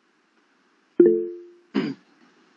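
A short notification chime sounds.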